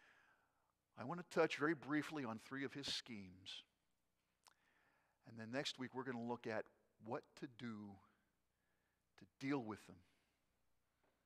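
A middle-aged man speaks calmly and clearly through a microphone in a large room, with pauses between phrases.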